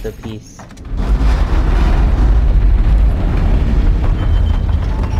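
A heavy stone door grinds with a deep rumble.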